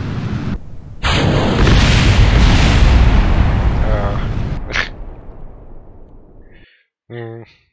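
A rocket explodes with a loud blast that fades.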